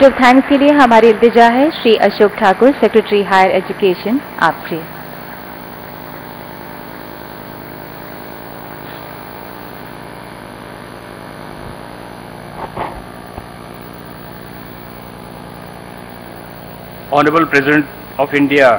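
A man speaks through a microphone, his voice carried over loudspeakers in a large hall.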